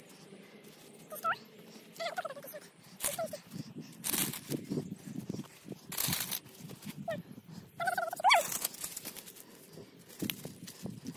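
Dry straw and soil rustle and crunch under a hand.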